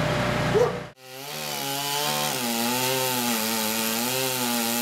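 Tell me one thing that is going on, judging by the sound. A chainsaw revs and whines while cutting wood.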